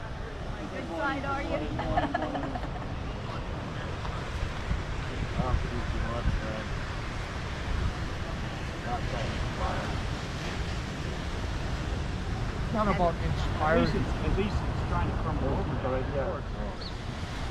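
Adults talk quietly nearby outdoors.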